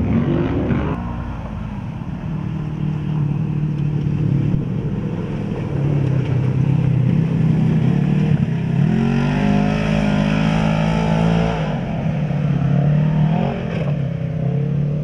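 A buggy engine drones and revs up hard.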